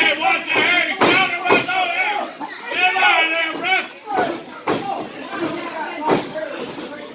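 Bodies slap and thud together.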